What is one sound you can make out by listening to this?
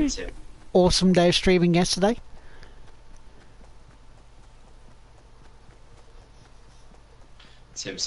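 A man speaks into a close microphone with animation.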